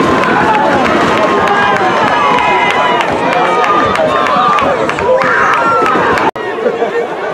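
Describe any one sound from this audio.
Young boys shout and cheer excitedly close by.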